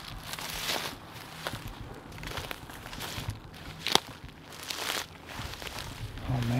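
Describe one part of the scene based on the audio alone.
Dry grass crunches and rustles underfoot.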